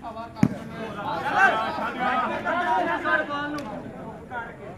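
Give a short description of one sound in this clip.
A crowd of men cheers loudly.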